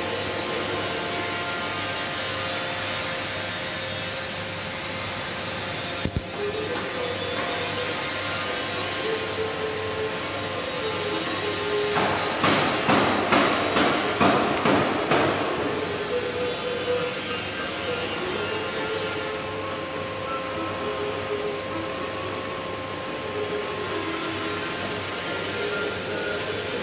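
A welding arc crackles and hisses steadily.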